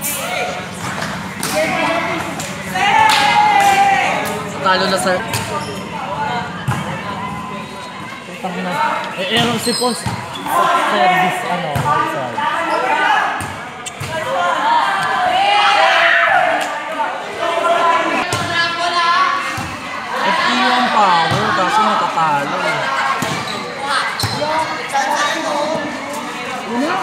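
Young people shout and call out during an outdoor volleyball game.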